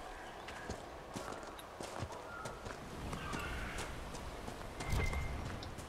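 Footsteps crunch on gravel at a running pace.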